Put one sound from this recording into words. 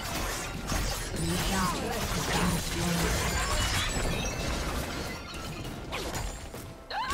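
Game spell effects crackle and blast in a busy fight.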